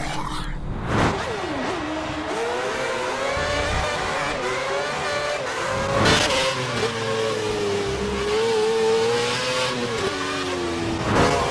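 A racing car engine whines at high revs, rising and falling as gears change.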